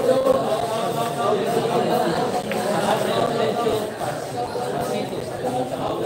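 Pool balls click against each other.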